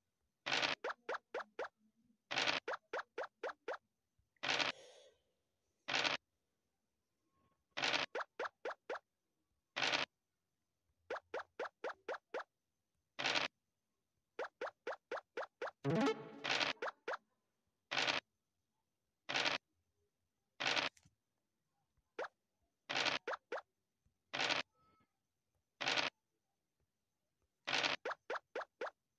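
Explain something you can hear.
Game pieces hop along the board with quick ticking clicks.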